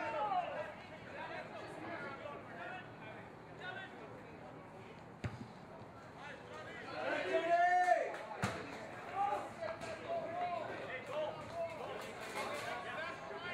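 Young men shout to each other across an outdoor field.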